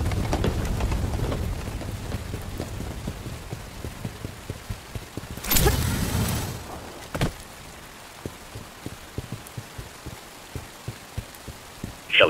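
Footsteps splash and thud on wet ground.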